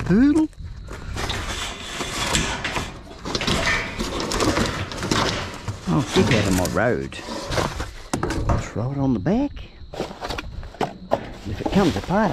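Plastic sheeting rustles and crinkles as it is handled.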